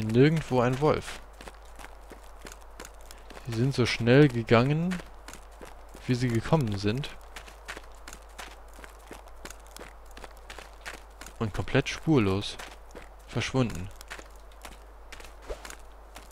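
Footsteps crunch through snow at a steady pace.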